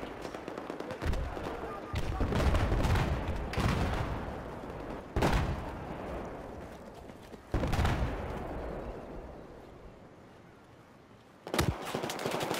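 A rifle fires loud single shots that echo and fade away.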